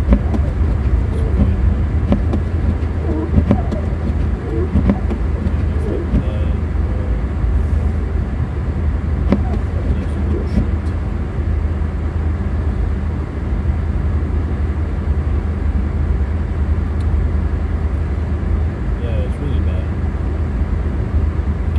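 Tyres rumble and hiss over a snowy road.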